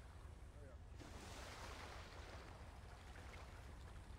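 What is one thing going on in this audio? Water splashes and drips.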